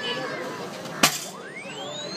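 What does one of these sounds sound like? A heavy mallet strikes a metal striker pad with a single loud thud.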